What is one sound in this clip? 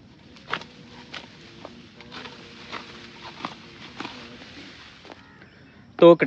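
A sickle cuts through grass stalks with sharp snips.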